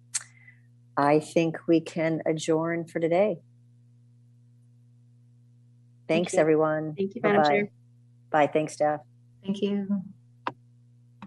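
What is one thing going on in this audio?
An adult speaks calmly over an online call.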